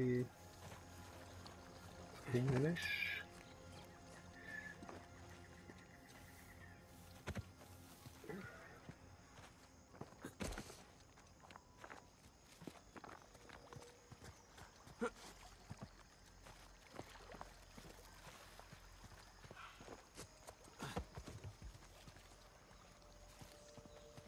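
Footsteps crunch through undergrowth and over stone.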